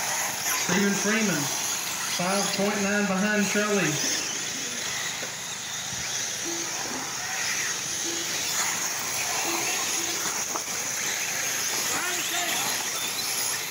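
Small electric model cars whine as they race over dirt.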